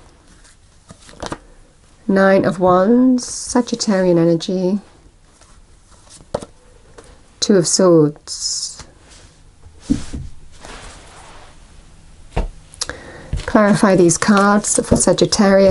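Playing cards are shuffled and riffled by hand.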